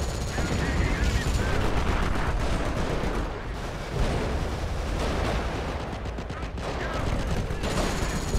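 Tank engines rumble and clank steadily.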